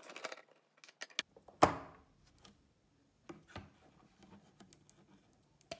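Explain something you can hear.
Metal parts click and knock as a panel is lifted off.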